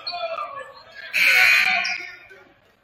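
A referee's whistle blows once, loud and short.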